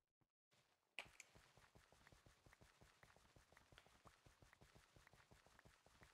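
Game blocks break with rapid soft clicks.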